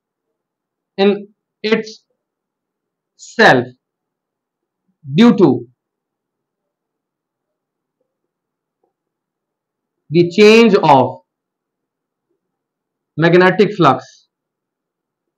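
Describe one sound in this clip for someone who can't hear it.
A man speaks calmly in short phrases with long pauses, close by.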